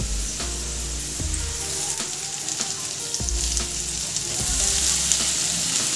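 Food sizzles in hot oil.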